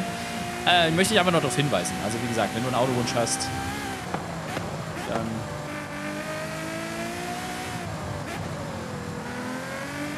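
A sports car engine roars at high speed, its pitch rising and falling with gear changes.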